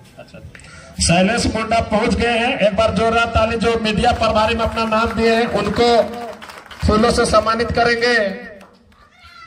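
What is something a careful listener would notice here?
A man's voice booms loudly over a loudspeaker.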